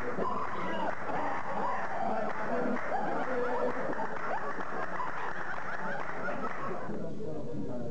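Men sing together.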